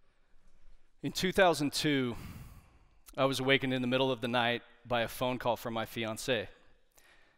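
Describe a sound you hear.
A man speaks calmly to an audience through a microphone.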